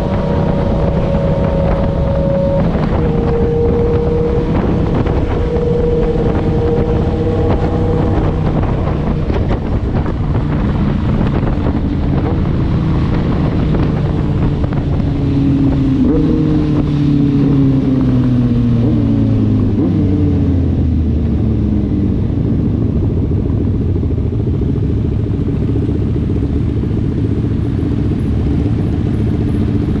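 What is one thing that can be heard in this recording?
Motorcycle engines hum steadily nearby, rising and falling in pitch as they speed along.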